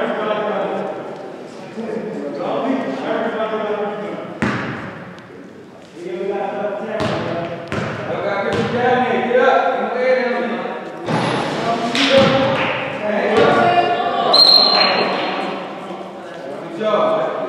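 Young men call out and talk across a large echoing gym.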